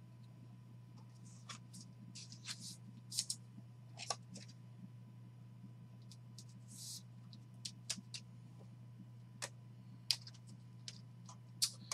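Plastic card sleeves and cards click and rustle as they are handled.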